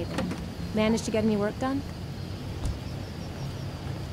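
A refrigerator door thuds shut.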